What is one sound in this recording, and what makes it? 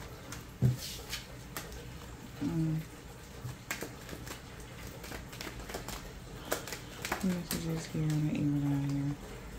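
Cards shuffle and slap together in a pair of hands.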